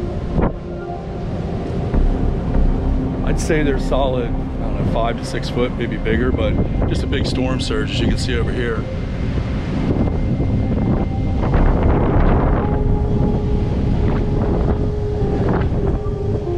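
Waves wash gently onto a beach.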